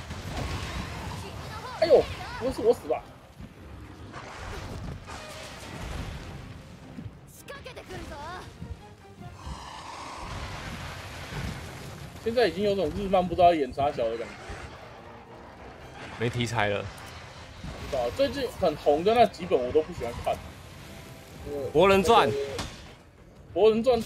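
Fiery explosions burst and crackle.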